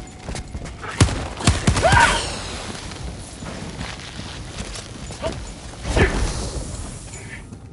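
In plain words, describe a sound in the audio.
Loud explosions boom close by.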